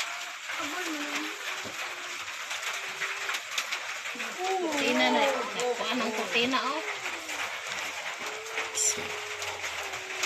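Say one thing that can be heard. A young child babbles and squeals.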